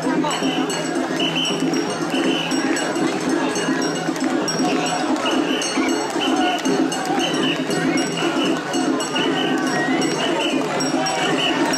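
A large crowd of men chants in a steady rhythm outdoors.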